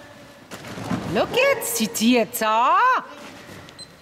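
A woman calls out loudly to a dog, echoing in a large hall.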